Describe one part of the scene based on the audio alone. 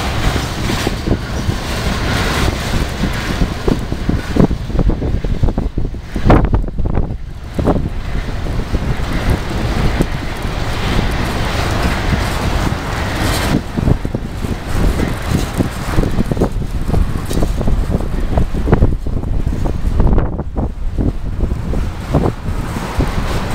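A freight train rumbles and clatters steadily past on the tracks.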